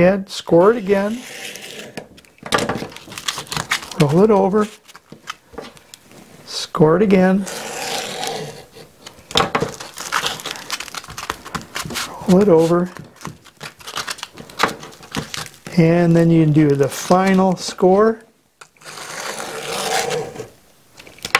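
A blade scrapes and slices through tape.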